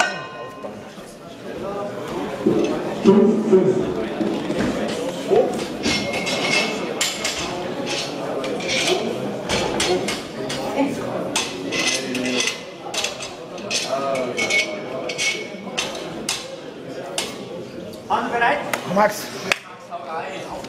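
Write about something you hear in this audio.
A young man talks calmly and close by in a large echoing hall.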